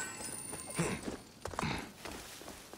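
A sword swooshes through the air.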